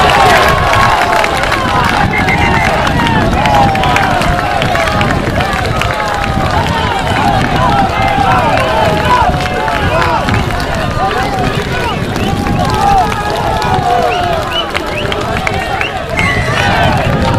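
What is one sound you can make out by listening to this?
A crowd of young men and spectators shouts and cheers outdoors.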